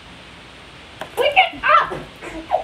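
Young children shout and squeal excitedly close by.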